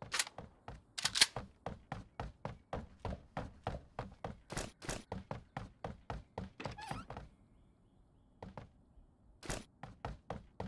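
Quick footsteps thud across a wooden floor.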